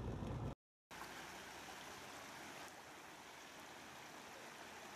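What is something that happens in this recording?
A flooded stream gushes swiftly past.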